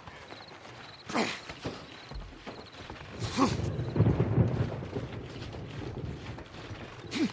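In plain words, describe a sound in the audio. Footsteps thud and scrape on rough ground.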